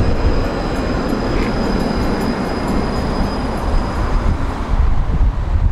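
A tram rumbles past close by.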